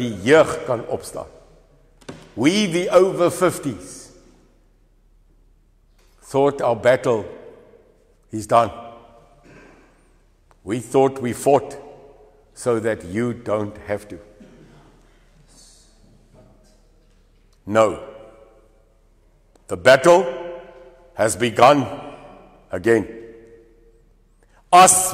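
A middle-aged man speaks calmly in pauses, in a room with a slight echo.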